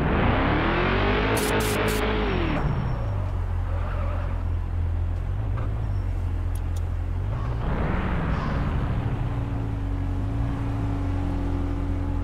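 A car engine hums steadily at low speed.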